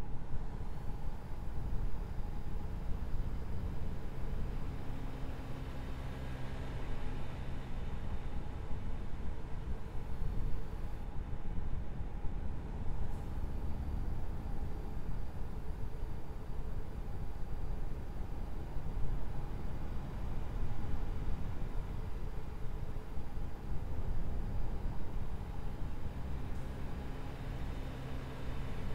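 A truck engine rumbles steadily at cruising speed.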